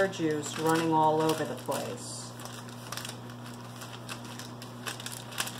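Hands rustle and crinkle paper while tossing sliced food.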